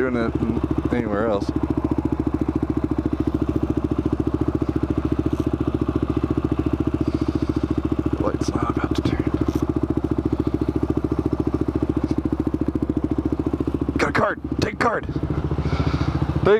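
A small motor idles with a steady, rapid putter close by.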